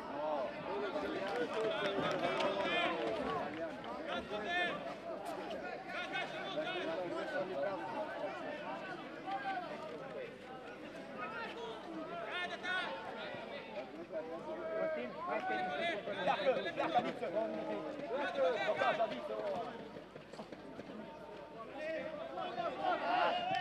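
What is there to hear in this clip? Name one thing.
Men shout to each other across a pitch.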